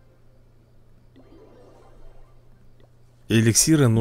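A gentle chime rings.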